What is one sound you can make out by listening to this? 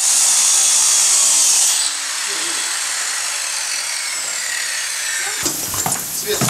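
An angle grinder screeches loudly against metal, then winds down.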